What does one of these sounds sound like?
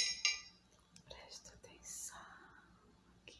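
A young woman whispers softly close to a microphone.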